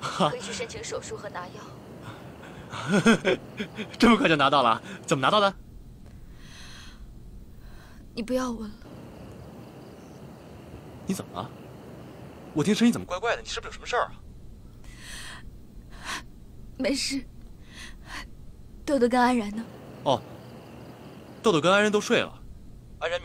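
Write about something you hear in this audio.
A young man talks cheerfully on a phone, close by.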